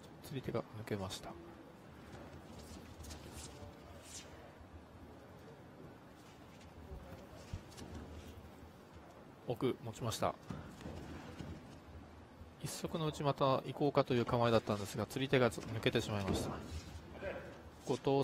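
Heavy cloth jackets rustle and snap as two men grapple.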